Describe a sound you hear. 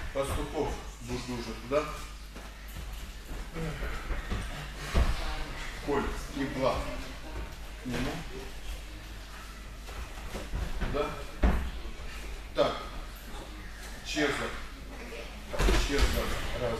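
A man speaks loudly in a large echoing hall.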